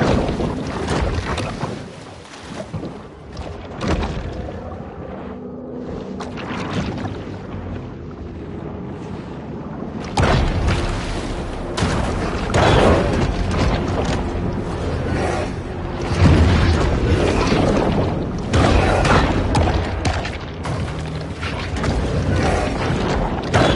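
Underwater rumbling and bubbling murmurs steadily.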